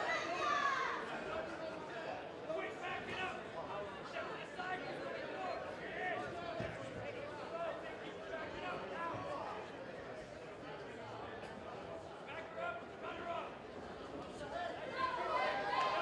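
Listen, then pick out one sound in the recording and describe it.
A ringside crowd talks and shouts.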